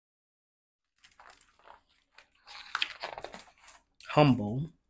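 Pages of a book rustle.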